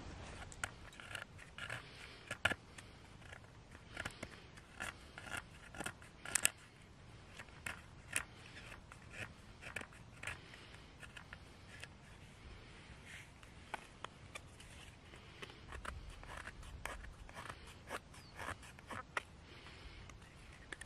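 A knife blade shaves and scrapes curls from dry wood in short, repeated strokes.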